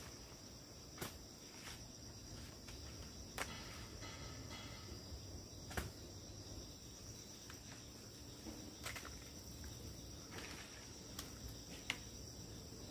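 Twigs snap and crack sharply.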